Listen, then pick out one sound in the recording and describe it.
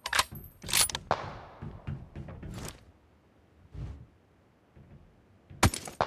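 A rifle fires several sharp, loud shots.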